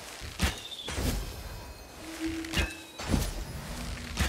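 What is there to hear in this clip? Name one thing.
A dull burst thuds.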